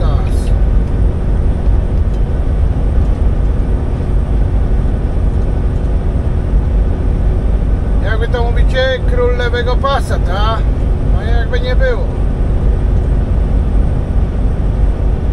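A car engine hums and tyres rumble steadily on the road.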